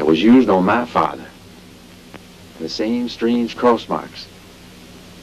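A young man speaks calmly and earnestly, close by.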